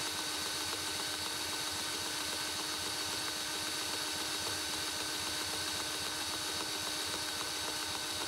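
An electric drill whirs steadily as it spins a small engine over.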